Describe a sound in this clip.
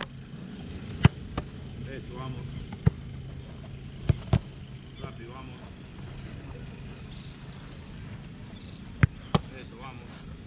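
A football is kicked with sharp thuds, outdoors.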